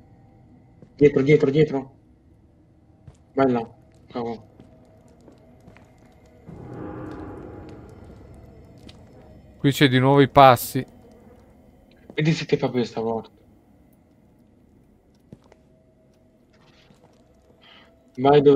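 A middle-aged man talks into a microphone in short, calm bursts, close by.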